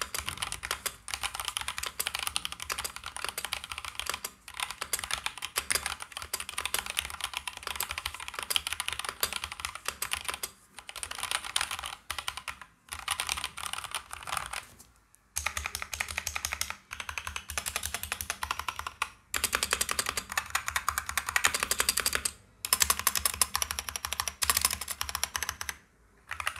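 Keyboard keys clack rapidly and steadily under fast typing.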